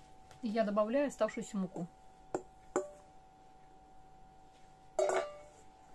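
Flour pours softly into a metal bowl.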